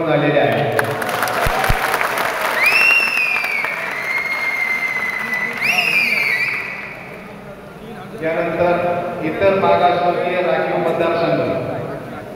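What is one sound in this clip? A crowd of men talk and murmur loudly in a large echoing hall.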